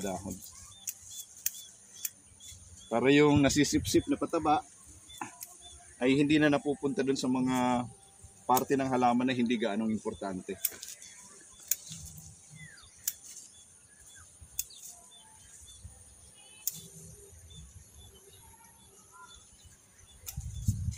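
Leaves rustle as a man handles a plant.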